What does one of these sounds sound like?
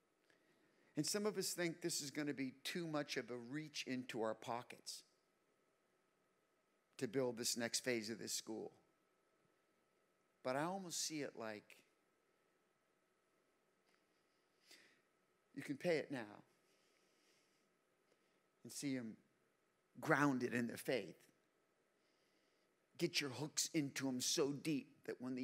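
A middle-aged man speaks calmly into a microphone, heard through loudspeakers in a large hall, with pauses between phrases.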